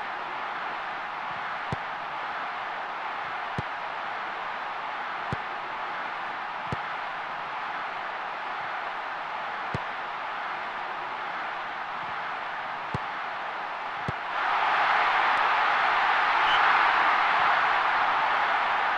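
A stadium crowd murmurs steadily, then swells into loud cheering.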